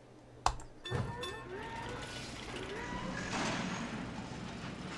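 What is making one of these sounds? Construction clatter and rumble rise as a small building goes up.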